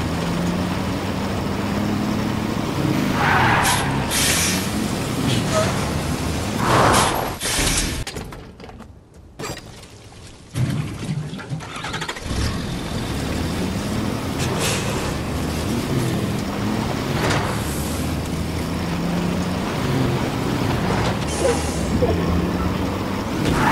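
A truck engine rumbles steadily and revs as it drives.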